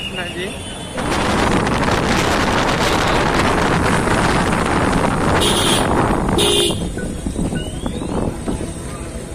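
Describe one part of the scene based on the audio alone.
A motorbike engine hums while riding.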